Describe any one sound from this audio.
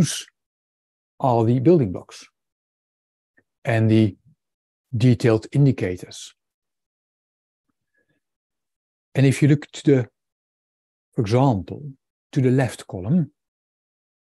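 A man speaks calmly in short phrases through an online call, with pauses.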